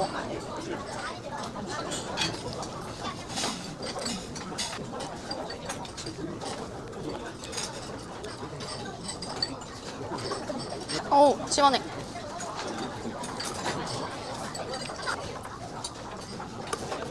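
Metal spoon clinks against a metal bowl.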